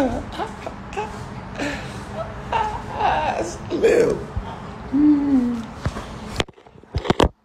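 A young man talks and laughs close to a phone microphone.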